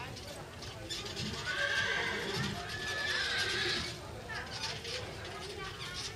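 A horse-drawn carriage rolls slowly over grass.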